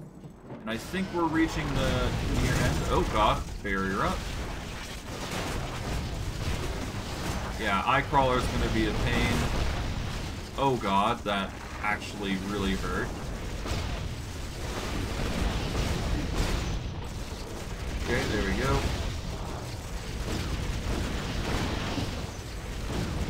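Magic spells crackle and blast in a fight.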